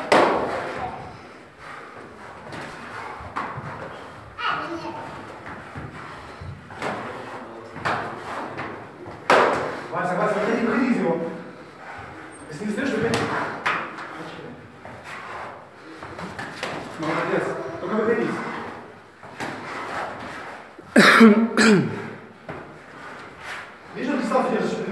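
Feet thud and shuffle on the floor.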